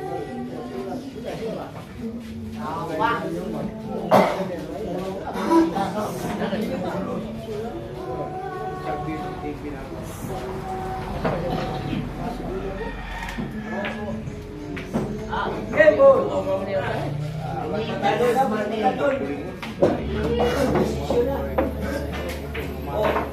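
Men talk and chat casually nearby.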